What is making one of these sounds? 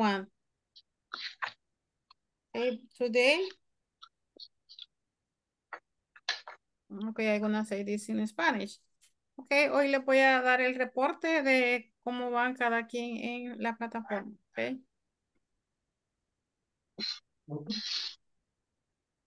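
An older woman speaks calmly over an online call.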